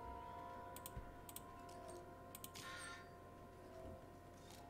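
A soft electronic click sounds as a card is placed.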